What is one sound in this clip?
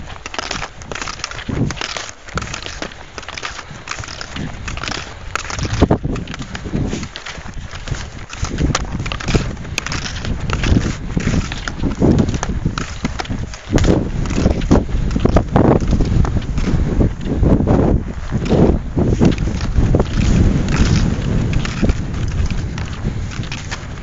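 Strong wind buffets the microphone outdoors in loud gusts.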